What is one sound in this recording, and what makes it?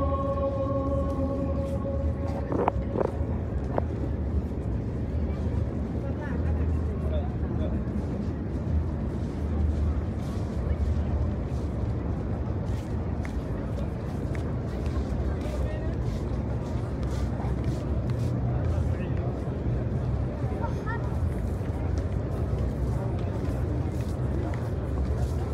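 Many footsteps shuffle on stone paving.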